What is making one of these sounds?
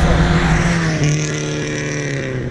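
A car approaches along a road.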